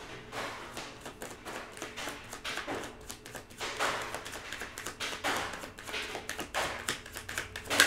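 Cards shuffle and flick in a woman's hands.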